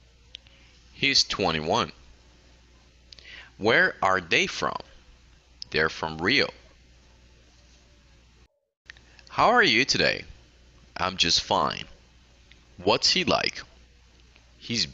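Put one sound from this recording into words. A young woman speaks calmly over an online call, in short phrases with pauses.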